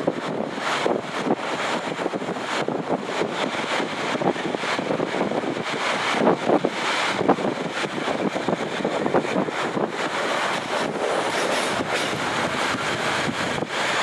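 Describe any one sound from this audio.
A train rumbles and clatters steadily along the rails.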